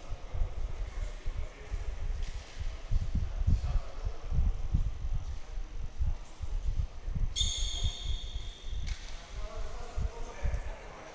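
Basketballs bounce with dull thuds in a large echoing hall.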